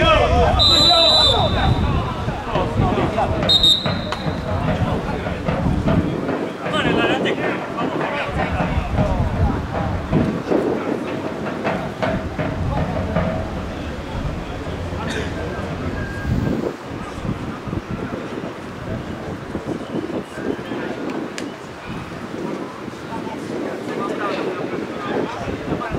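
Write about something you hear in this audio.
Spectators call out and chatter in the distance outdoors.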